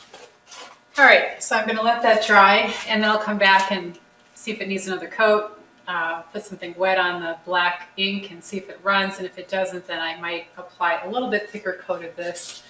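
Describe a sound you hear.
An older woman speaks calmly and clearly to a listener close by.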